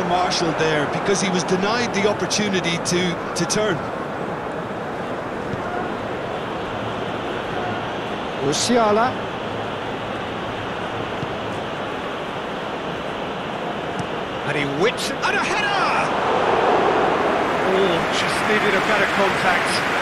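A large stadium crowd roars and cheers steadily, swelling louder near the end.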